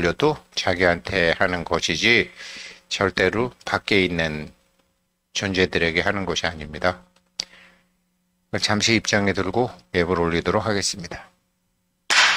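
A man chants a prayer aloud nearby.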